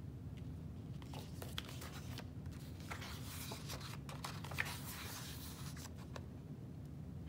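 Paper pages rustle as a book is opened and turned.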